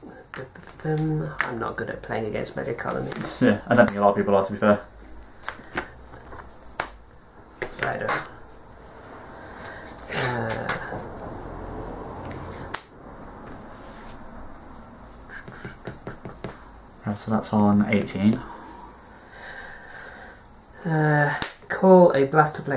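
Playing cards tap softly as they are laid down on a table.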